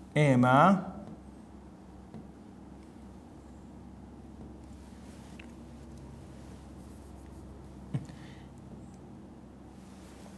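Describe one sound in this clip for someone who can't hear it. A marker scratches on a whiteboard.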